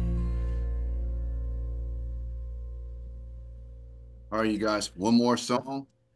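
A song with singing plays and slowly fades out.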